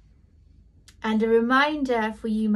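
A woman speaks close to a microphone in a warm, animated voice.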